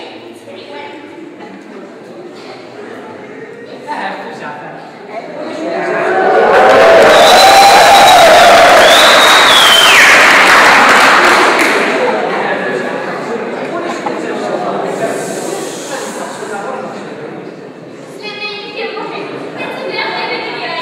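A man speaks with feeling in a large echoing hall.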